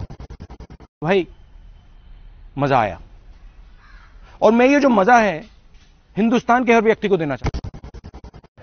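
A man speaks calmly in an interview.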